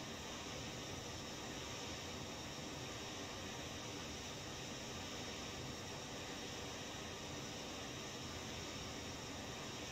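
Jet engines roar steadily.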